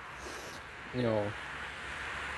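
A young man speaks briefly, close to the microphone.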